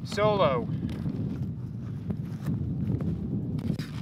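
Boots tread on soft, stubbly ground.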